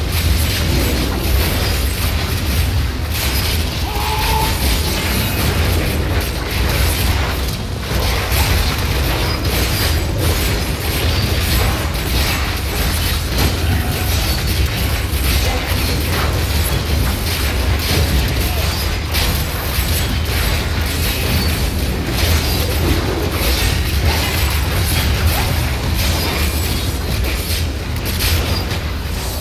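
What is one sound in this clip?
Game spells crackle and explode in rapid bursts.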